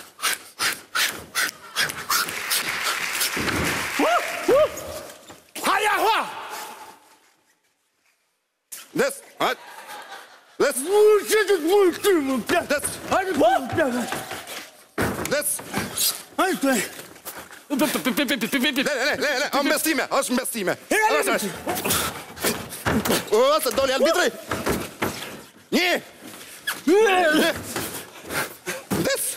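Men shout and grunt with animation.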